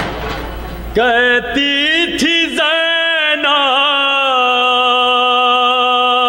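A young man sings a mournful chant loudly through a microphone.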